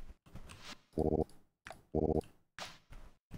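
Short game sound effects chime and beep.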